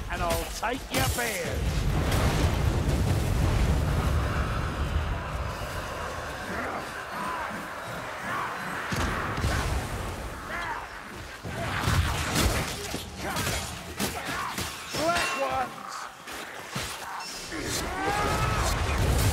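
Creatures snarl and screech in combat.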